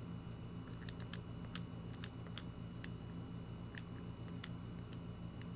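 Short electronic blips tick several times in quick succession.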